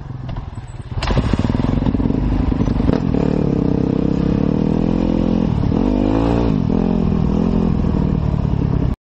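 A dirt bike engine revs loudly and roars.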